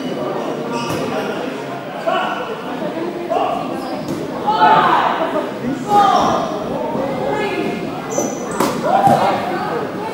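A ball thuds against the floor and players.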